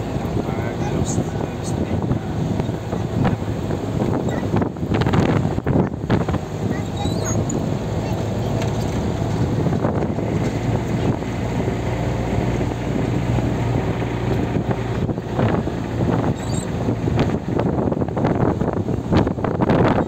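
Wind buffets against a moving vehicle outdoors.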